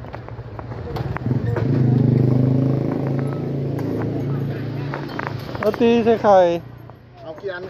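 A motorcycle engine hums while riding along a street.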